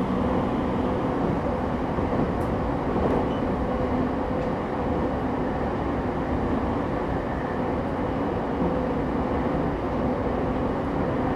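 A stopped electric train hums steadily and low.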